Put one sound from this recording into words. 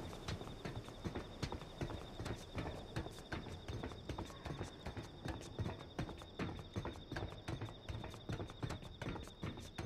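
Hands and boots clank on metal ladder rungs in a quick, steady rhythm.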